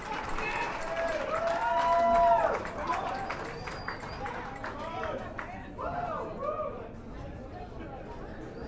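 A band plays electric guitars loudly.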